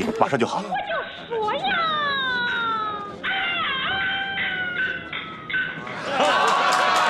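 A woman sings in a high, gliding opera voice.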